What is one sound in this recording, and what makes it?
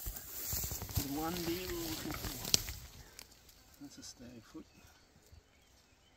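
Dry grass rustles as a heavy body is moved.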